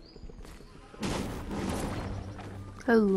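Wooden boards smash and crack apart.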